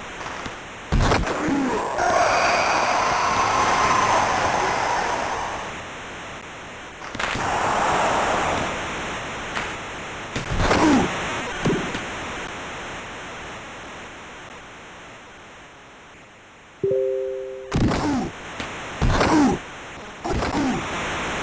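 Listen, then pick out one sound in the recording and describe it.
Hockey sticks slap a puck with sharp clacks.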